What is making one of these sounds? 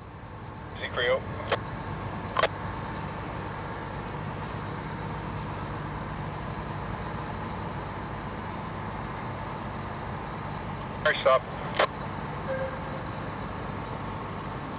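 A generator engine hums steadily nearby, outdoors.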